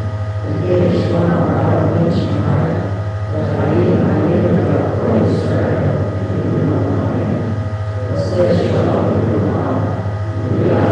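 A large group of men and women sings together.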